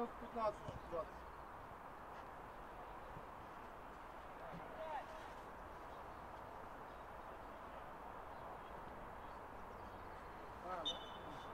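Men shout to each other across an open field, some distance away.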